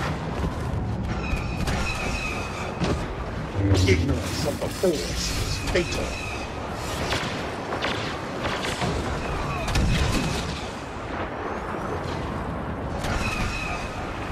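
Blaster shots crackle in the distance.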